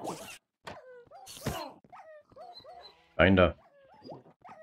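A pig grunts nearby.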